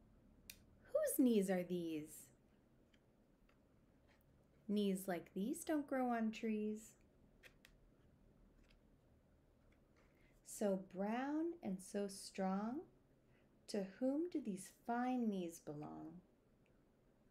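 A woman reads aloud expressively, close to the microphone, with pauses between phrases.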